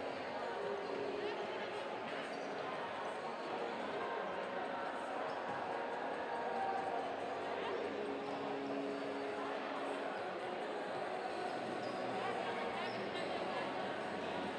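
Young people and adults chatter in a large echoing hall.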